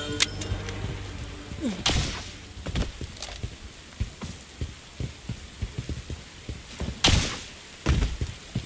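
Footsteps tread quickly over grass and stone.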